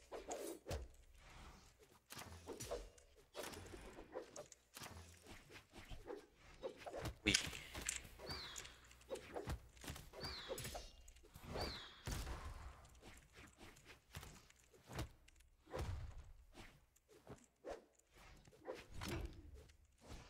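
Game fighters strike each other with sharp hits and whooshes.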